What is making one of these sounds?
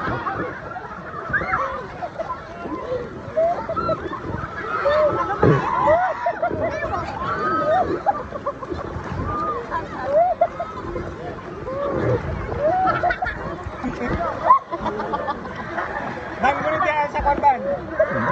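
Water splashes and rushes around close by.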